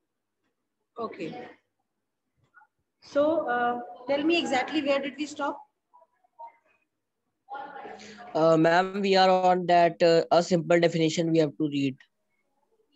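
A young woman talks through an online call.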